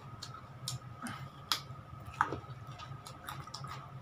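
A man chews and slurps noodles close by.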